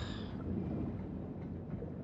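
Bubbles gurgle and rise through water.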